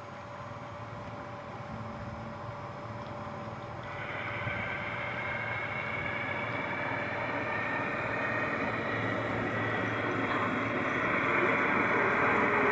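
A small electric model train hums and rattles along its track, growing louder as it comes closer.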